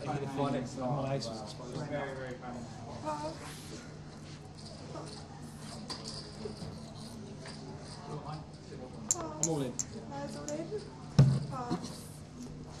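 A middle-aged man talks with animation nearby.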